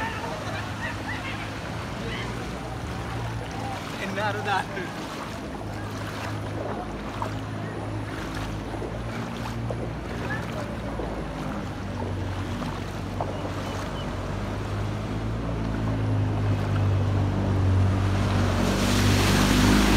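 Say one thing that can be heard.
People splash as they wade through knee-deep floodwater.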